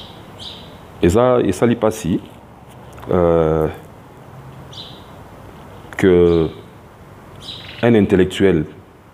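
A man speaks with animation into a phone, in short bursts.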